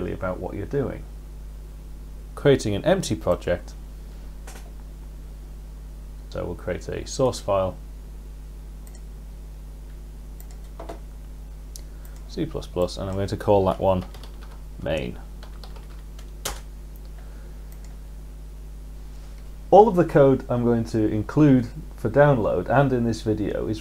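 A man speaks calmly and clearly close to a microphone, in short bursts with pauses.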